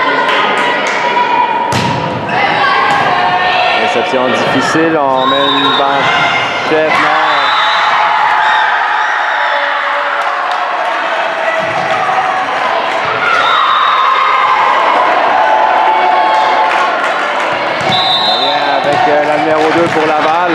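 A volleyball smacks off hands and arms with sharp slaps.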